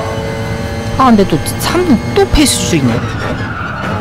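A racing car engine blips and drops sharply in pitch through quick downshifts.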